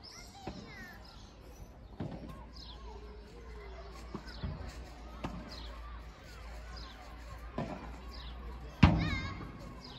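Paddle rackets strike a ball with sharp pops, back and forth.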